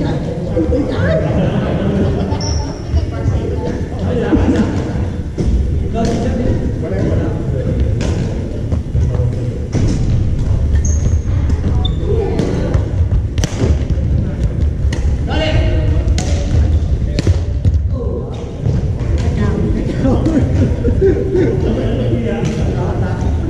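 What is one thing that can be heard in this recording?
Badminton rackets hit a shuttlecock with sharp pops.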